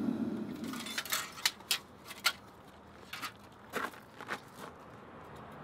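Metal tongs clink sharply against a crucible several times.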